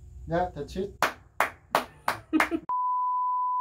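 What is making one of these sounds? A man claps his hands in a steady rhythm.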